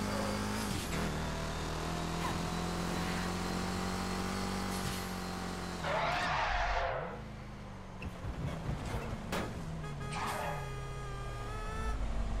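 A car engine hums steadily and shifts through gears.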